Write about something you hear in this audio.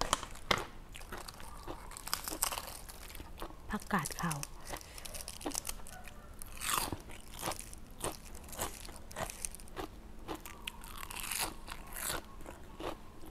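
Crisp lettuce leaves crackle and tear in a woman's hands.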